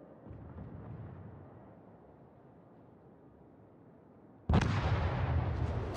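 Shells explode with a deep rumble.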